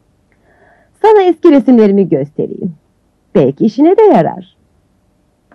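A woman speaks loudly and with animation close by.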